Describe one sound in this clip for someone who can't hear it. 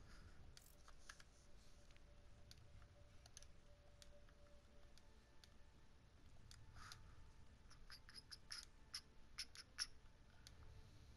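Menu selections click softly in a game.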